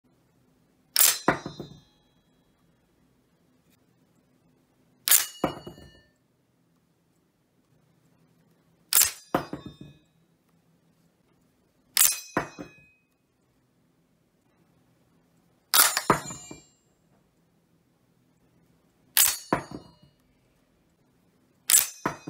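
A steel en-bloc clip pops out of a bolt-action rifle's magazine with a sharp metallic clack.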